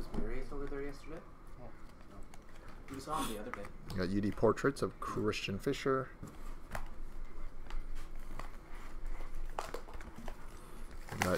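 Cardboard cards rustle and slide against each other in hands.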